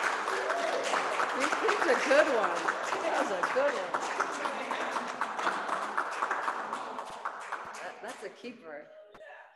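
A small audience claps and applauds.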